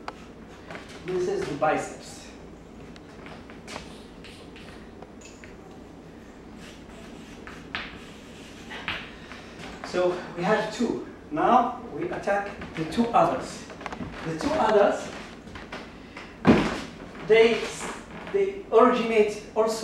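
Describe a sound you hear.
A middle-aged man speaks calmly and clearly, as if teaching, close by.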